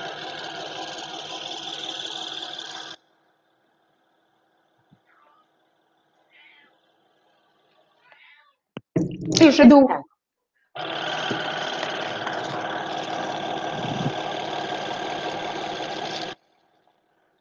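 An electric toothbrush buzzes steadily against teeth.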